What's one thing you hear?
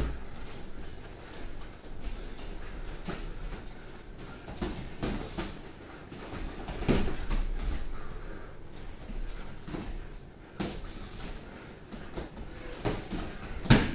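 Boxing gloves thump against focus mitts in quick bursts.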